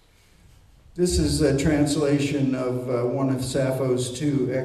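An elderly man speaks loudly into a microphone in an echoing hall.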